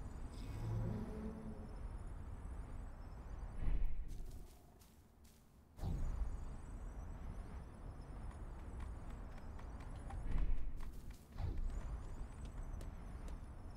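Hover boards whoosh and hum steadily over grass.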